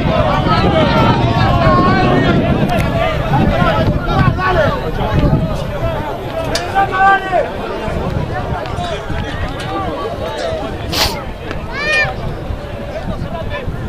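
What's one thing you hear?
Spectators talk nearby.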